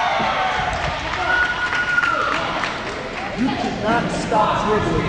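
Children shout in the distance in an echoing hall.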